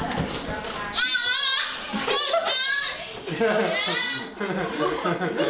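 A baby babbles and squeals.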